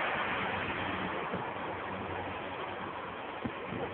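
A train rumbles past along the tracks, fading away.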